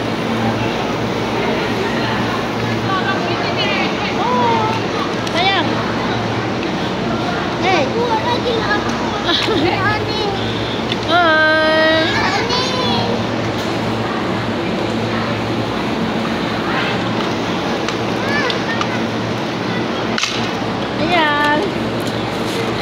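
A crowd of children and adults chatters and shouts in a large echoing hall.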